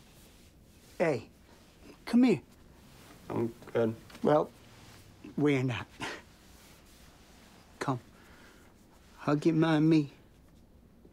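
A middle-aged man speaks close by.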